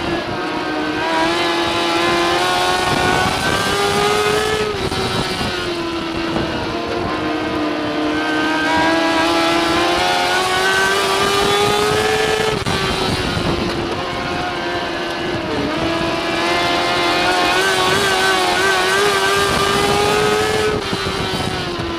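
A racing car's engine roars loudly close by, its pitch rising and falling as it speeds up and slows down.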